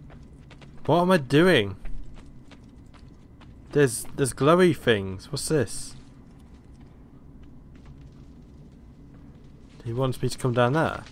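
Footsteps tap softly on a stone floor.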